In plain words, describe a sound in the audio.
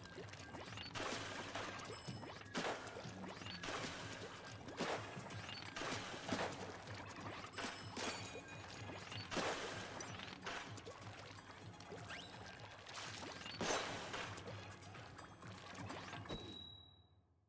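Ink guns splat and splash in bursts.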